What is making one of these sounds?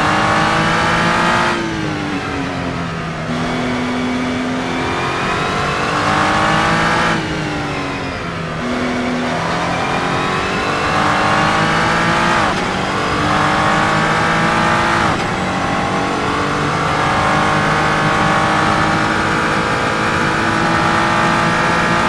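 A racing car engine roars loudly, rising in pitch as it speeds up and dropping sharply at each gear change.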